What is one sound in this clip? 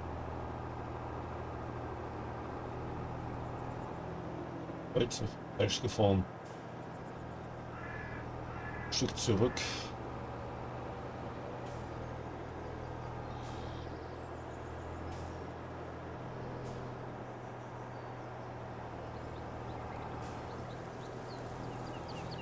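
A tractor engine hums steadily as a tractor drives along.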